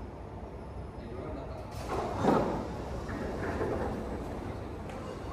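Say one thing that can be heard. Distant footsteps echo faintly across a large, hard-floored hall.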